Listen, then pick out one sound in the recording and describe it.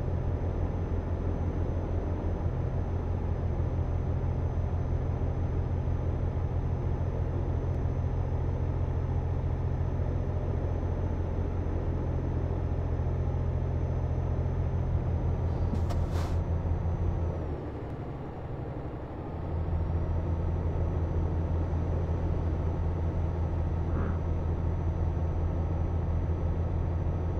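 A truck engine hums low and steady, dipping briefly before rising again.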